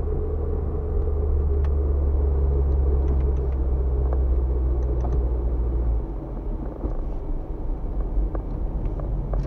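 Tyres rumble over a rough road surface.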